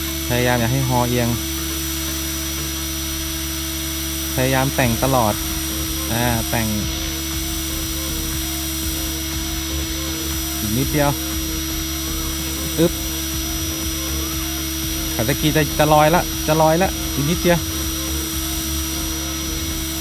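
A small drone whines steadily as it hovers nearby.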